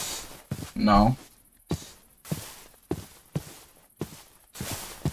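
Footsteps crunch on grass at a steady walking pace.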